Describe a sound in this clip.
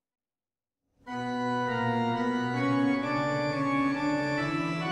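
A pipe organ plays a steady, full chord-filled melody.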